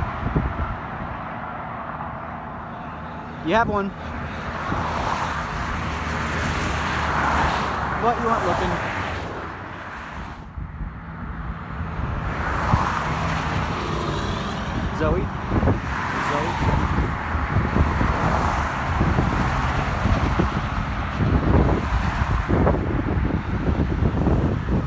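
Cars and trucks rush past close by on a highway, with a steady roar of tyres.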